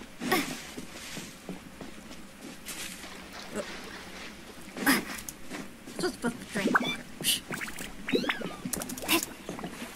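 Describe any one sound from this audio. Footsteps patter quickly through grass and shallow water.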